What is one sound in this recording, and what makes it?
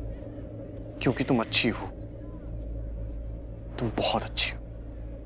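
A young man speaks softly and closely.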